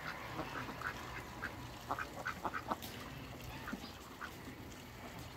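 Poultry call in short bursts.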